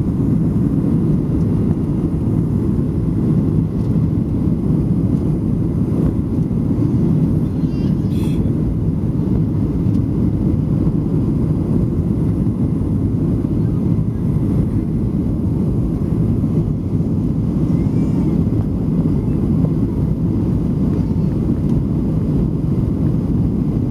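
Airplane engines roar steadily from inside a cabin.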